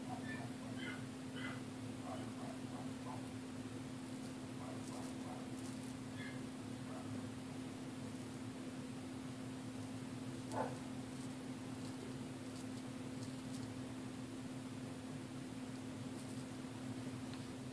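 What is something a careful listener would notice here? A razor scrapes softly through stubble close by.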